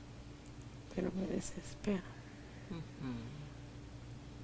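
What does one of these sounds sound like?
A woman groans and mumbles sleepily close by.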